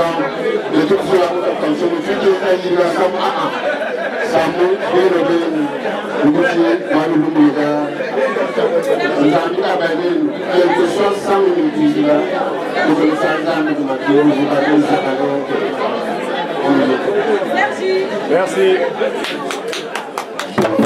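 A middle-aged man speaks with animation into a microphone over a loudspeaker in an echoing room.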